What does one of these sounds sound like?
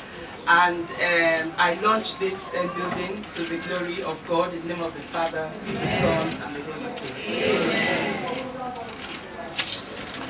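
A woman speaks calmly into a microphone close by.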